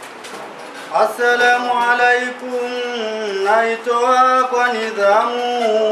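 A young man chants in a steady, melodic voice close to a microphone.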